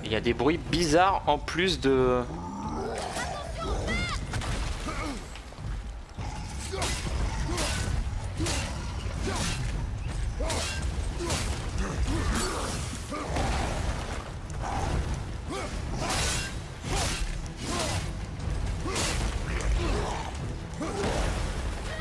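A large creature roars and grunts.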